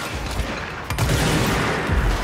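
Explosions boom and crackle with sparks.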